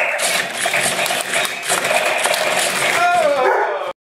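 Plastic toy robots knock and clatter against each other.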